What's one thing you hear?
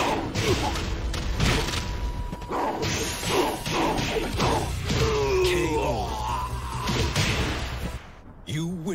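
Heavy punches and kicks land with hard thuds.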